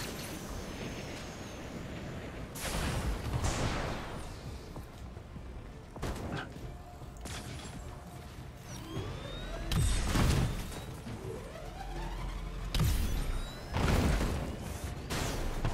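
Energy blasts fire in sharp bursts.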